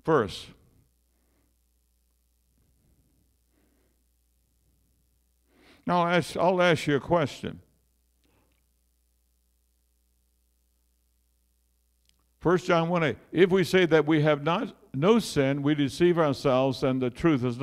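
An elderly man speaks with animation into a microphone, heard through loudspeakers in a large room.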